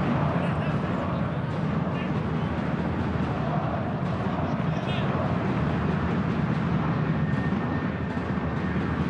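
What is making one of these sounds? A large stadium crowd roars and chants steadily in the distance.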